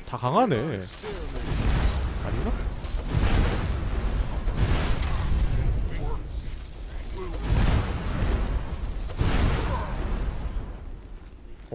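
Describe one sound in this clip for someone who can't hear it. Fire roars and crackles in loud bursts.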